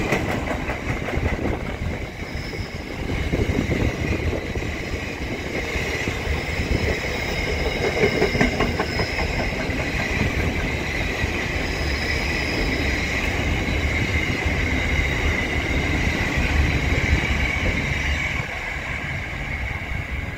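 A long freight train rumbles past close by, its wheels clattering over the rails.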